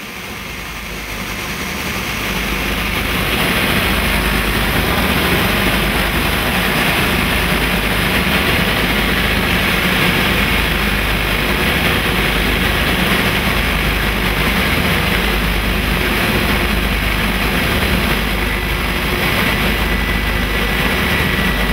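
The radial engines of a twin-engine B-25 bomber roar in flight, heard from inside the nose.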